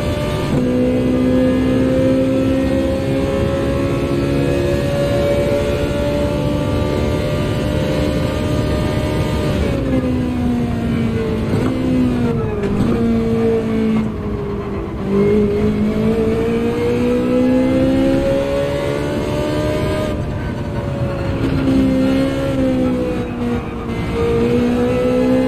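A racing car engine roars at high revs, dropping in pitch for the corners and climbing again.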